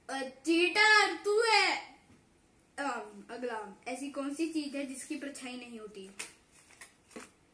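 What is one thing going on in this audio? A young boy reads out aloud close by.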